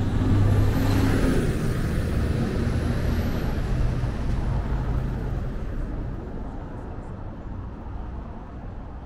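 A bus engine rumbles close by and fades as it pulls away.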